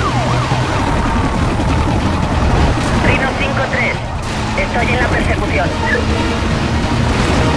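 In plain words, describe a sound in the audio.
A sports car engine roars at full speed.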